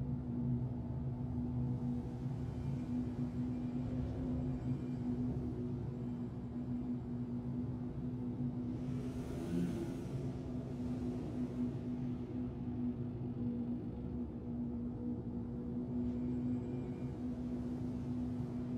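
A spacecraft engine hums steadily in a low drone.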